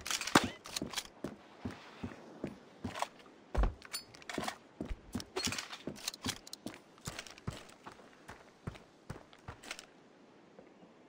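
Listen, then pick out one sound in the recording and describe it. Quick footsteps tap across a hard floor.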